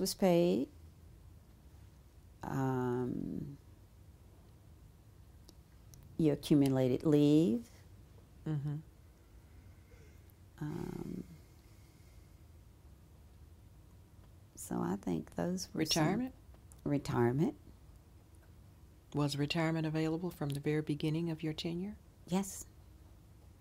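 An elderly woman speaks calmly into a close microphone, in short bursts with pauses.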